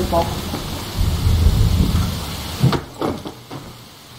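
A body drops and lands with a heavy thud.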